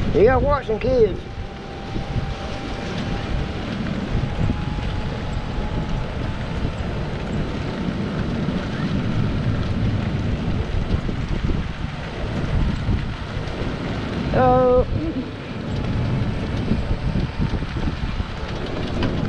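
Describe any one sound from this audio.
Tyres of a small cart roll steadily over pavement.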